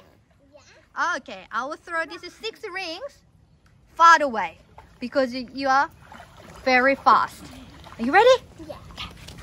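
A young girl talks excitedly nearby.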